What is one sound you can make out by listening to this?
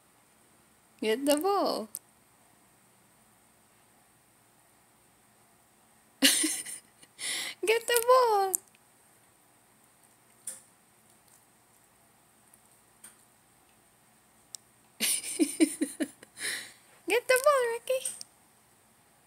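A small dog whines and howls in short bursts, close by.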